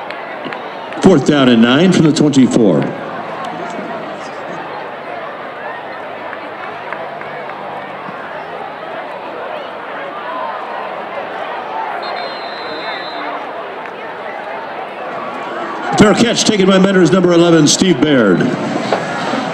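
A crowd cheers and shouts loudly in sudden bursts.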